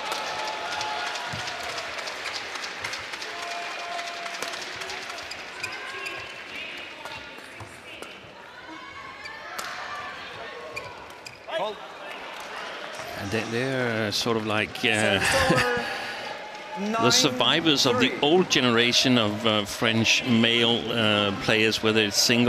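A crowd murmurs, then cheers and claps loudly.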